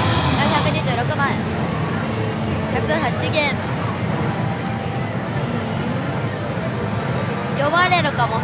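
A slot machine plays electronic jingles and chimes.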